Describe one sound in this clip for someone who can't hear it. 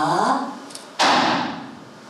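A hand slaps sharply on a wooden floor.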